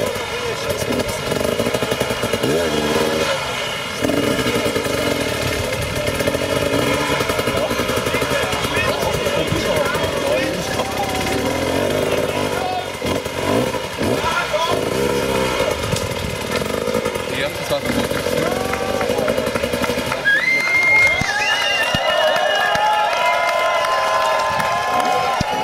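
A dirt bike engine revs hard and sputters close by.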